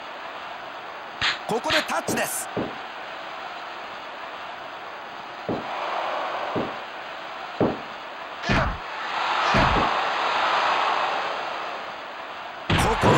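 A crowd cheers and roars in a large arena, swelling now and then.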